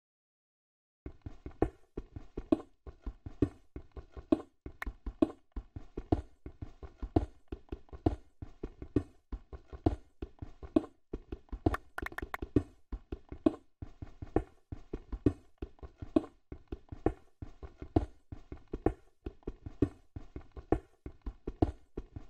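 Stone blocks crumble and break apart.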